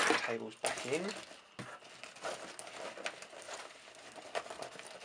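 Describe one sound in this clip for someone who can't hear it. A plastic bag rustles and crinkles as hands handle it.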